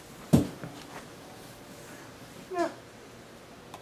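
Paper rustles as sheets are handled close by.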